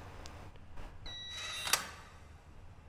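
A metal locker door clicks open.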